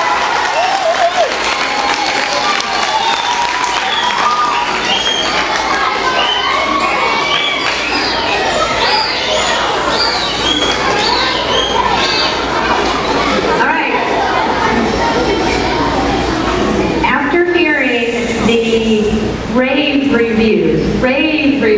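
Many children chatter and call out loudly in an echoing hall.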